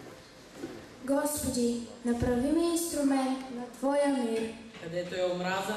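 A teenage boy reads aloud into a microphone.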